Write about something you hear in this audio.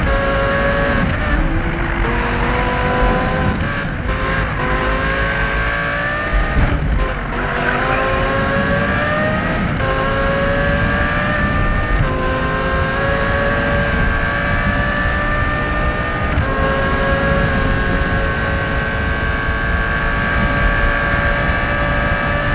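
A car engine roars at high speed, rising in pitch and dropping briefly with each gear change.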